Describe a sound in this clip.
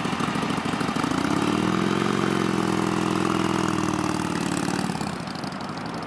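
A motorcycle engine revs up and pulls away.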